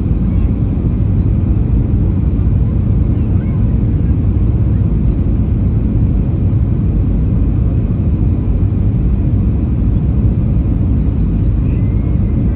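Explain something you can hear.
Jet engines roar steadily inside an airliner cabin.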